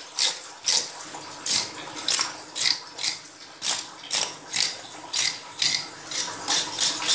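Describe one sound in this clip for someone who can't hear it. A scaler scrapes scales off a fish in quick, rasping strokes.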